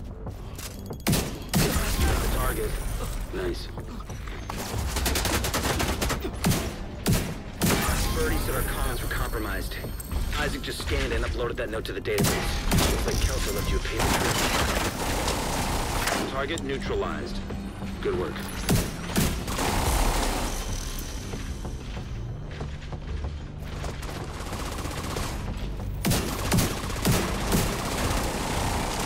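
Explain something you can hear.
Gunshots crack in short, sharp bursts.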